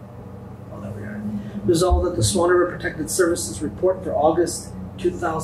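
An older man speaks into a microphone.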